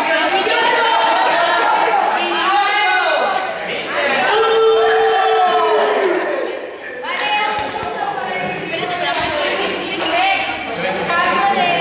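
A group of young men and women shout and chatter in an echoing hall.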